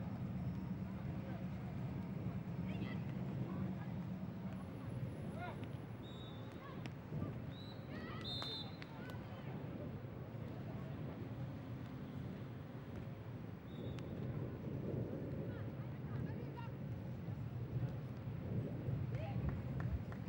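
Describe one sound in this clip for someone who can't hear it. A volleyball thumps off players' hands and arms.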